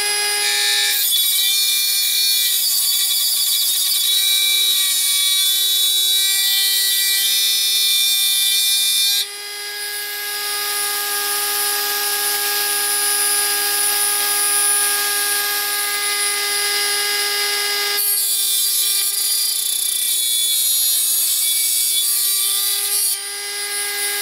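A cutting disc grinds harshly against thin metal.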